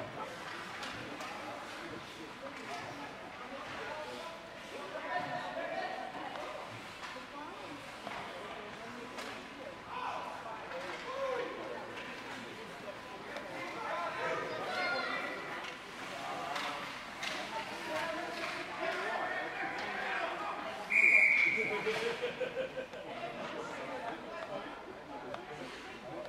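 Adults and children chatter and call out in a large echoing rink.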